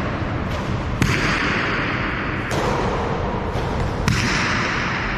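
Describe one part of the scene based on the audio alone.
A ball smacks against a wall and echoes through a large hall.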